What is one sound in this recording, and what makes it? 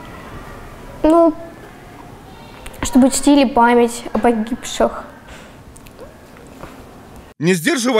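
A young woman speaks tearfully and close by, her voice trembling.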